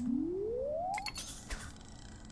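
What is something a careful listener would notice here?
A fishing line whips out through the air.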